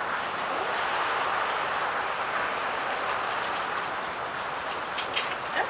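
A foam sponge squeaks and rustles as hands squeeze it.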